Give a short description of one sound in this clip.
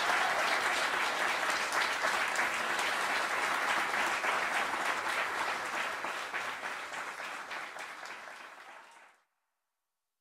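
An audience applauds loudly, then fades away.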